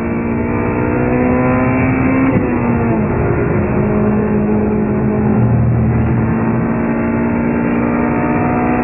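A car engine roars at high revs, rising in pitch and dropping briefly as gears shift.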